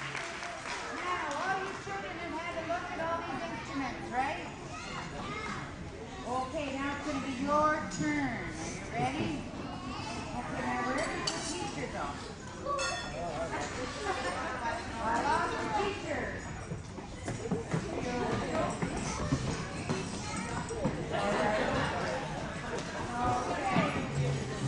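An elderly man speaks with animation to a crowd in a large echoing hall.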